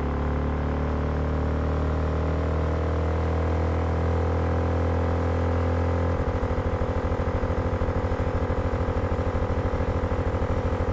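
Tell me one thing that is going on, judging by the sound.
A motorcycle engine hums steadily, then shifts to a rough, pulsing throb.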